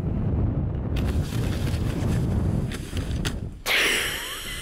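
A snowboard scrapes across the snow.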